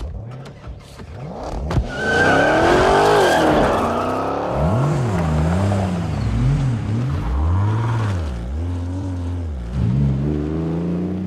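A car engine revs loudly as a car speeds off.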